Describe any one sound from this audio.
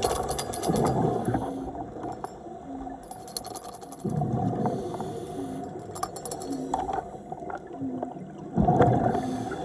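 Scuba regulators hiss and bubbles gurgle underwater.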